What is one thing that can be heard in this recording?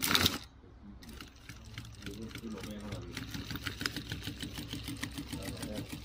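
A sewing machine stitches with a fast, even rattle.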